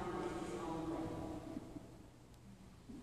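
A woman speaks calmly through a loudspeaker in a large echoing hall.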